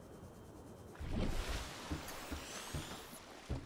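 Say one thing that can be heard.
Water splashes loudly as the vehicle breaks the surface.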